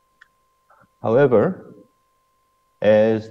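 A man speaks calmly through a microphone, as on an online call.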